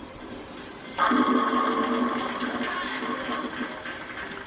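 Bowling pins clatter as they crash down in a video game heard through a television speaker.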